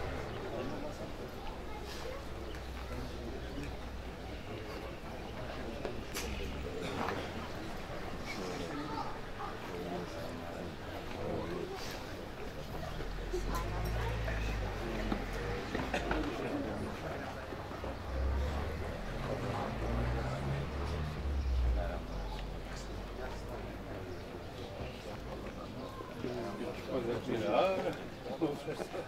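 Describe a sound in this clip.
Elderly men murmur and talk quietly outdoors, close by.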